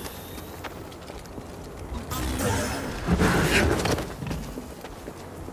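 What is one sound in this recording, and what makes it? A laser sword hums steadily.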